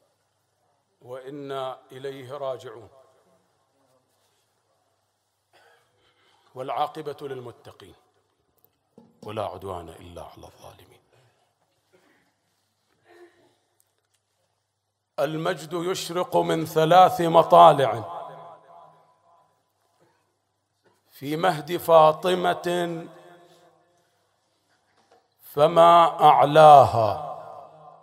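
A man speaks into a microphone in bursts, with a chanting, emotional tone and pauses between phrases.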